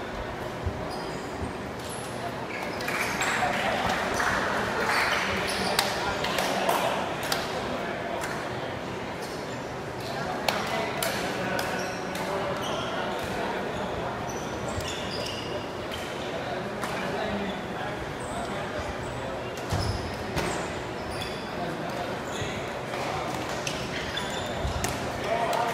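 Players' shoes squeak and thud on a hard indoor court, in a large echoing hall.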